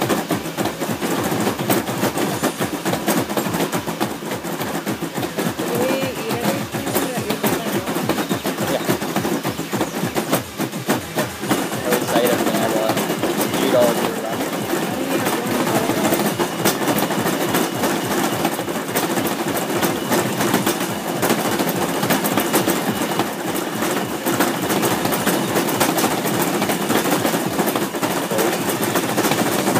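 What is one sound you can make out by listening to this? Fast electronic dance music plays loudly from an arcade machine's speakers.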